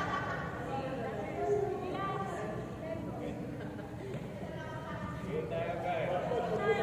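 Young women chatter and call out in a large echoing hall.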